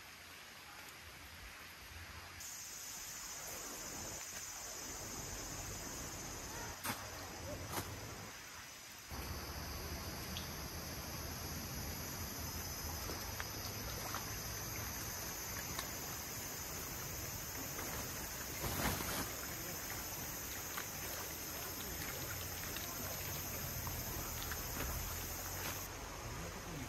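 A shallow stream flows and babbles nearby.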